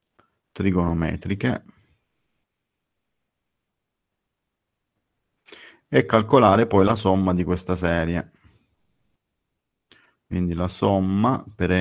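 A man speaks calmly into a microphone in an online call, pausing between phrases.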